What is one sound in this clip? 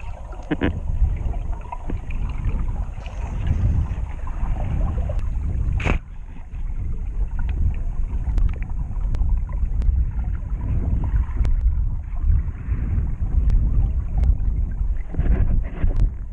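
Water rumbles and swishes, muffled as if heard underwater.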